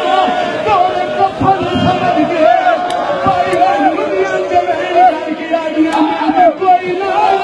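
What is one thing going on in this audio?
A crowd of men chants along in unison.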